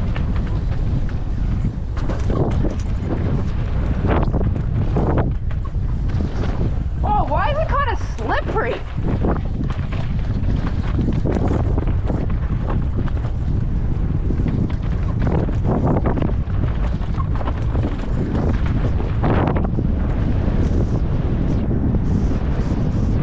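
A bike's frame and chain rattle over bumps.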